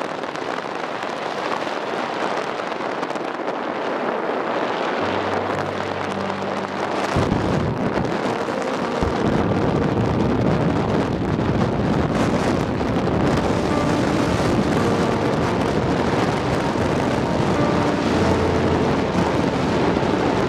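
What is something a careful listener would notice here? A car drives along a road, its tyres and engine making a steady rumble.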